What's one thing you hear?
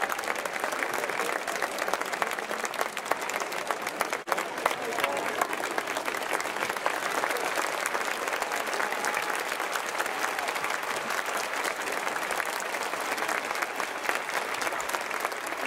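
A large crowd applauds loudly outdoors.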